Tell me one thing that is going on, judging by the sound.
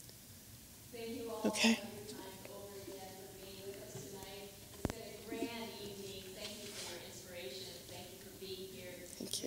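An elderly woman speaks from farther off, quieter.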